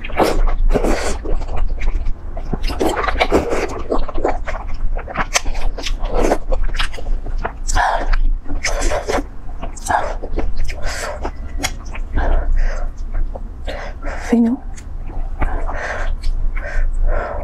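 A young woman chews food wetly up close.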